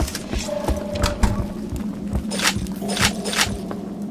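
A metal crate lid creaks open and clanks.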